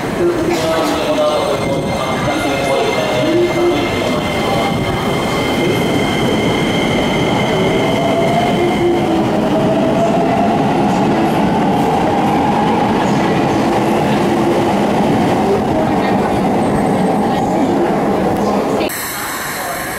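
A train pulls away and rumbles past, its motor whining as it speeds up.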